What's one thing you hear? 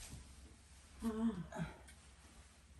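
An elderly woman laughs heartily.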